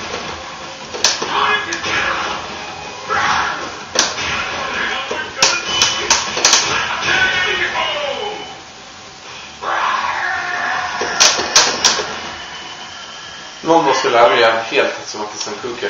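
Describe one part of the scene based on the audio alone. Fighters grunt and shout as they attack.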